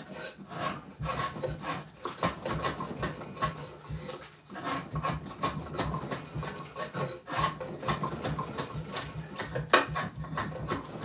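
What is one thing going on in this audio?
A drawknife scrapes and shaves wood in quick repeated strokes.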